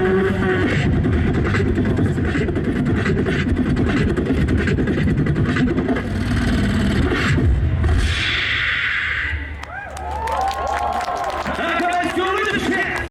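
A young man raps loudly through a microphone and loudspeakers.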